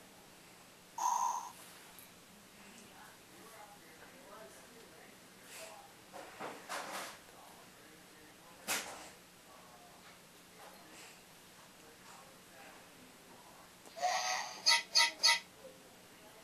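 Small toy robots chirp and beep electronically.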